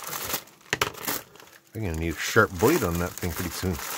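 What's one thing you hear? A plastic bag tears open.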